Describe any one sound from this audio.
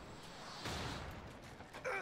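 A magic blast bursts with a whoosh.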